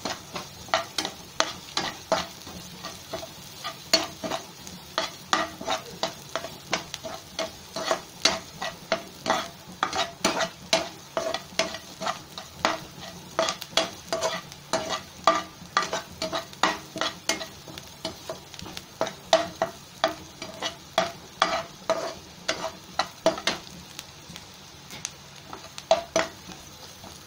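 Chopped onions sizzle in hot oil.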